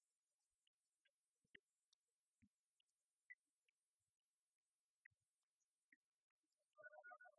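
A wall clock ticks.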